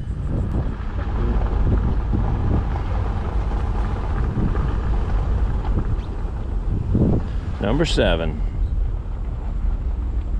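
A vehicle engine hums steadily at low speed.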